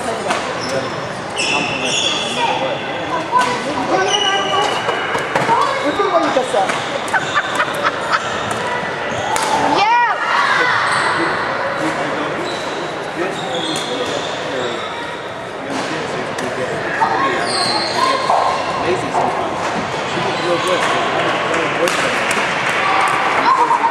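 Young women call out and chat in the background.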